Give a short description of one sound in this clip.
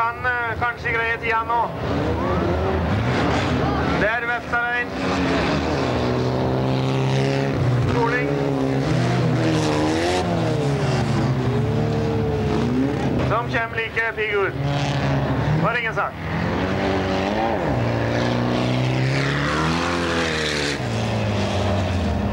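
Race car engines roar and rev up and down.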